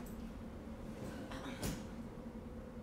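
A person drops back onto a mattress with a soft thump.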